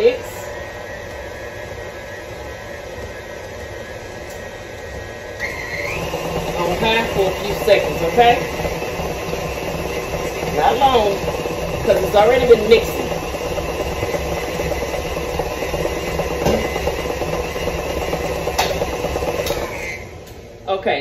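An electric stand mixer whirs steadily as it beats a batter.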